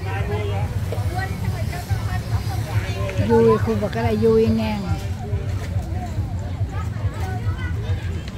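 A crowd of people chat and murmur outdoors.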